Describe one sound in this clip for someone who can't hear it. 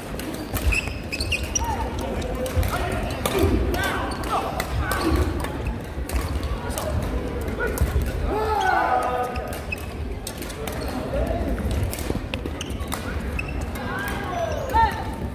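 A crowd of players and onlookers murmurs in the background.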